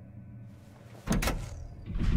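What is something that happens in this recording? A switch clicks as a foot presses it.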